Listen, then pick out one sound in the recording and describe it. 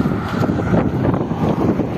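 A car drives by on a road.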